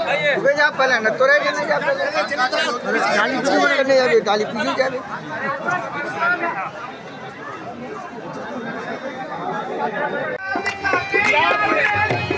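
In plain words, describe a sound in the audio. A crowd of men chant loudly together close by.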